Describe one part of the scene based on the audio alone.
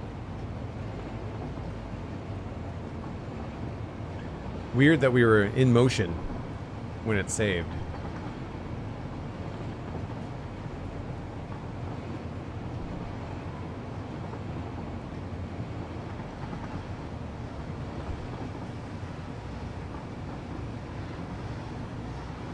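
A train rumbles steadily along a track.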